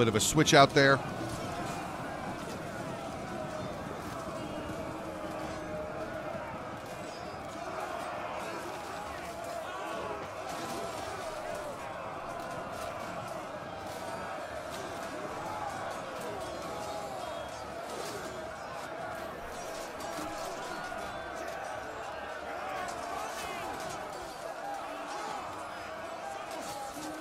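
A large crowd of soldiers shouts and roars in battle.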